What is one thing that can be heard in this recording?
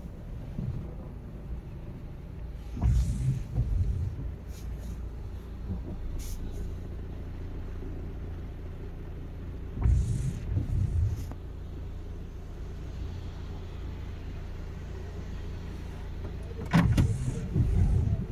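A car drives along, heard from inside.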